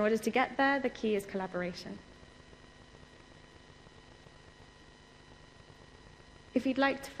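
A woman speaks calmly into a microphone, with a long pause.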